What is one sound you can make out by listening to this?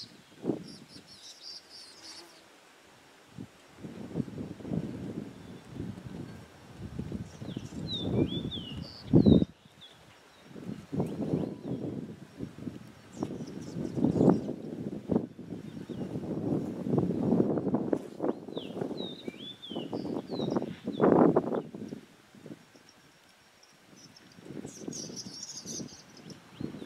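Small birds twitter with short, high chirps.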